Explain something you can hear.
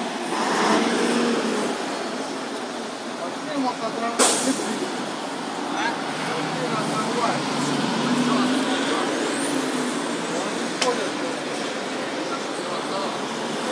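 A bus engine idles nearby with a steady low rumble.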